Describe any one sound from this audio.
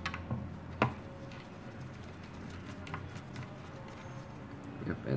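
Small clicks and taps sound as fingers handle a metal part.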